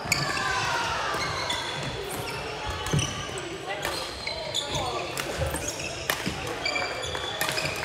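The sounds echo in a large indoor hall.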